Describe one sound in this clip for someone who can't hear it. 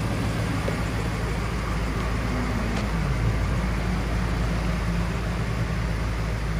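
A car engine idles with a steady, deep rumble.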